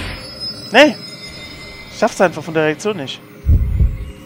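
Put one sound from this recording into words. A woman moans in an eerie, wavering voice.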